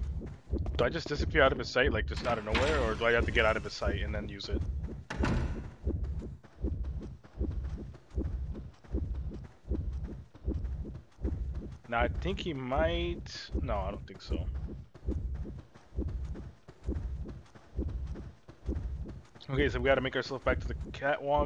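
Footsteps run quickly across a hard floor and up wooden stairs.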